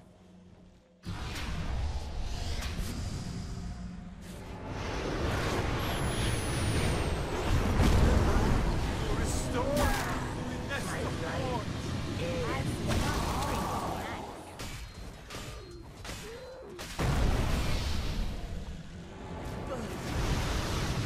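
Magic blasts and clashing blows crackle in a busy battle.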